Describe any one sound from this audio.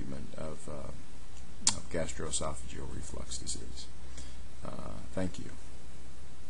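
A middle-aged man speaks calmly and close to a microphone.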